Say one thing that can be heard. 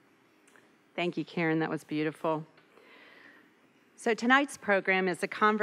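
An older woman speaks into a microphone.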